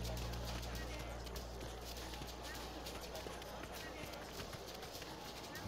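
Light footsteps patter quickly on stone.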